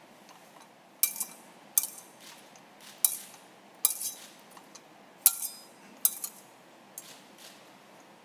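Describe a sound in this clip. A censer's metal chains clink in sharp, ringing strikes.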